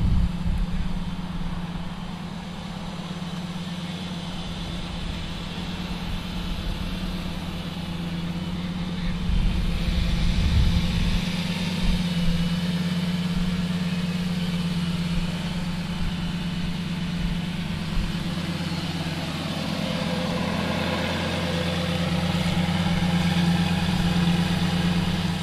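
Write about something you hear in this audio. A sports car engine idles with a low, steady rumble.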